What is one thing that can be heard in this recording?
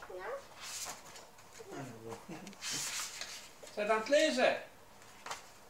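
A toddler girl babbles and chatters nearby.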